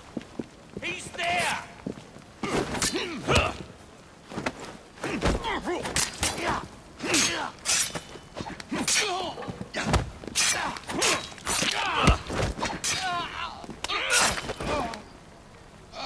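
A man grunts and groans as blows land.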